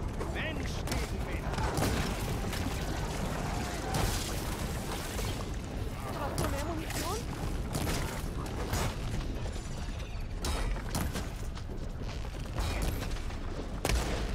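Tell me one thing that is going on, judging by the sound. A bow twangs as arrows are loosed again and again.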